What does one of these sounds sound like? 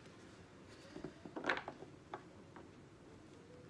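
Playing cards riffle and slap as a deck is shuffled.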